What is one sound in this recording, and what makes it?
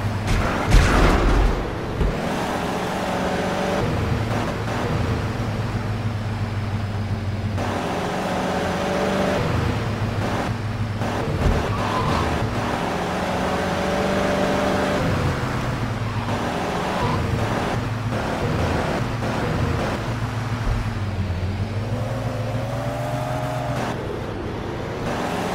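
A van engine hums steadily as it drives along.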